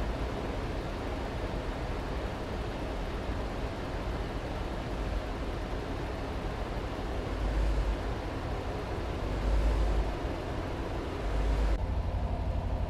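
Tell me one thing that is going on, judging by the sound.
A truck engine hums steadily, heard from outside with road noise.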